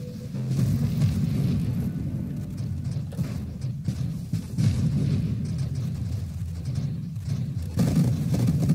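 Electronic explosions and zaps burst rapidly throughout.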